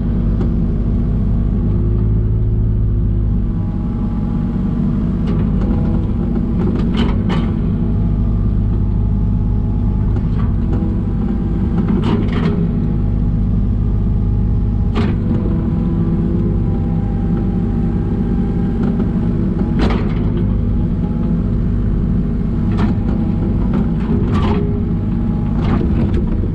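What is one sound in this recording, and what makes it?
Hydraulics whine as a digger arm moves.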